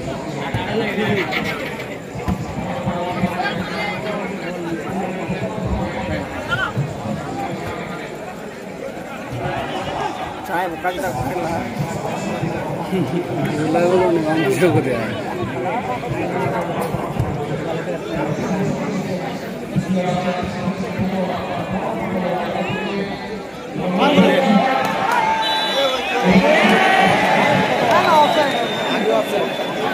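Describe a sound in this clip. A large crowd cheers and shouts outdoors, growing louder near the end.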